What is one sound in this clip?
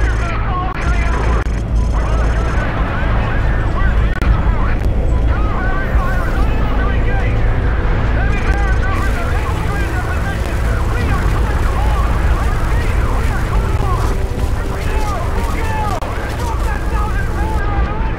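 A heavy vehicle engine rumbles low and steadily.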